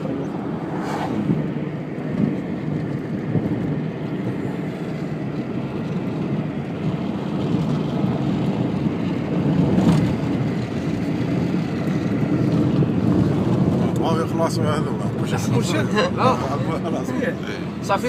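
Tyres rumble over a rough road.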